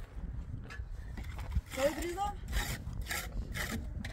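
A trowel scrapes and taps on concrete blocks.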